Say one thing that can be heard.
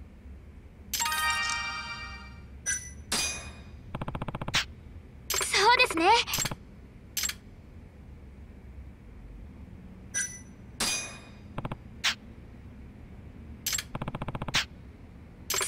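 Short electronic chimes and clicks sound.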